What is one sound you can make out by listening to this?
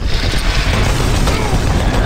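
A gun fires a loud blast.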